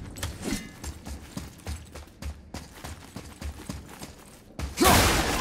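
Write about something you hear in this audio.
Heavy footsteps run over stony ground.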